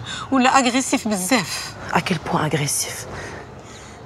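A middle-aged woman speaks calmly up close.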